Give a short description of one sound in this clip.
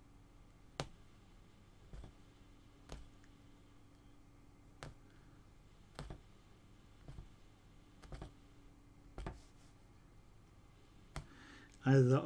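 A needle tool punches through taut cloth with soft clicks.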